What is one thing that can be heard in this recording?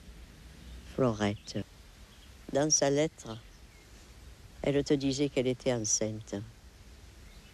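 An elderly woman speaks softly nearby.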